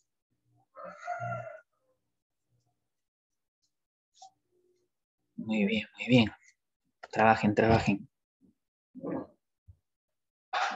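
A teenage boy speaks in short bursts over an online call.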